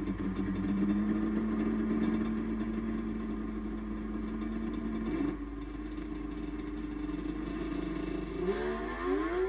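A snowmobile engine idles with a steady hum.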